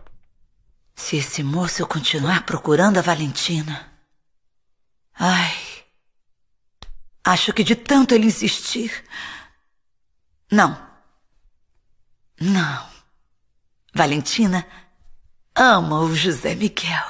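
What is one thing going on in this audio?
A middle-aged woman talks to herself close by, anxiously and in bursts.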